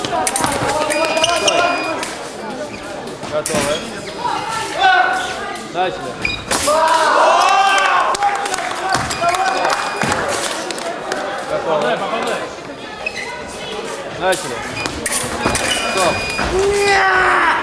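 A scoring machine beeps.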